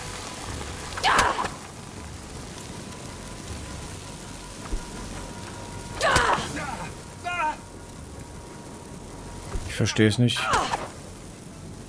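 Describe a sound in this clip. Fiery blasts whoosh and burst close by.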